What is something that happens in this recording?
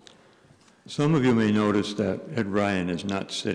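An elderly man speaks clearly into a microphone in a large echoing hall.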